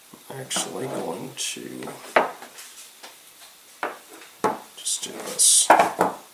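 Metal pliers clink against a wooden table.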